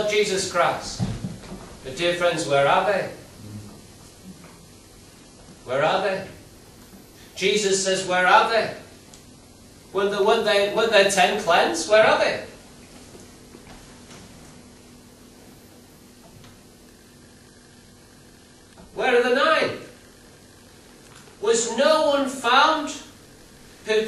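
A middle-aged man speaks slowly and deliberately through a microphone, with long pauses, in a room with a slight echo.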